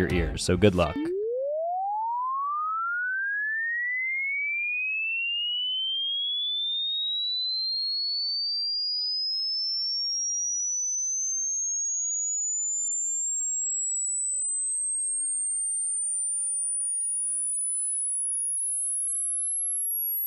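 A steady test tone rises slowly in pitch from very low to very high.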